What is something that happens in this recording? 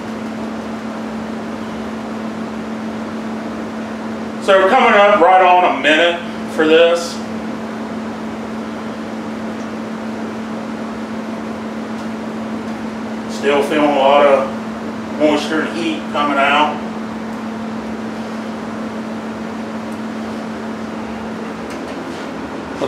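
A furnace hums steadily in the background.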